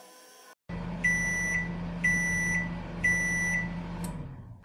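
A toy microwave beeps three times.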